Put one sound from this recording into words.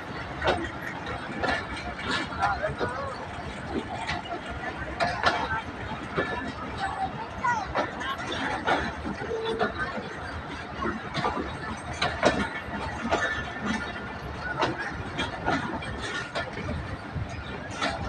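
A passenger train rolls past close by, its wheels clattering rhythmically over the rail joints.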